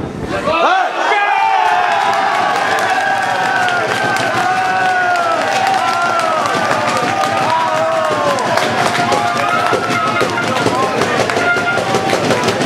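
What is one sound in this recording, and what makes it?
Young men shout and cheer outdoors in celebration.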